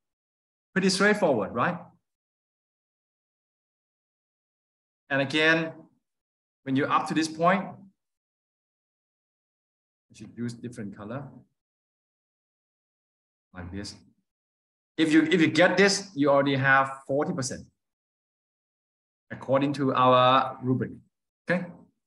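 A man speaks calmly in short phrases over an online call.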